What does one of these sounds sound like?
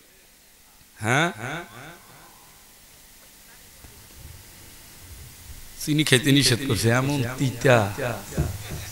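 A middle-aged man speaks with animation into a microphone, heard through a loudspeaker.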